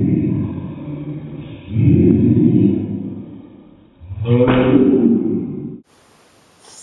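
A young girl shouts with excitement.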